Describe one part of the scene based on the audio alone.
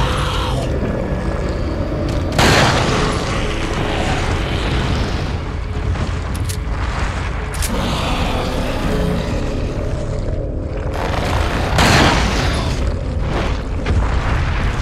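A monster growls and roars.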